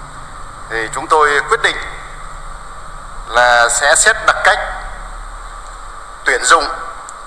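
A young woman reads out slowly and clearly through a microphone, with pauses between phrases.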